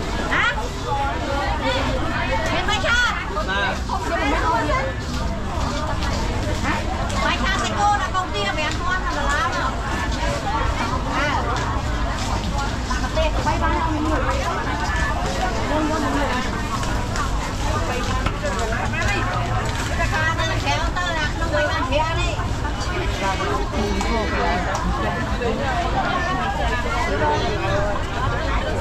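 A woman talks with a customer close by.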